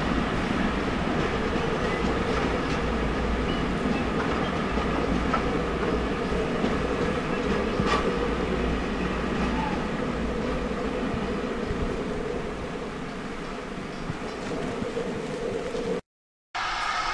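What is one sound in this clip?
A train rumbles steadily across a bridge.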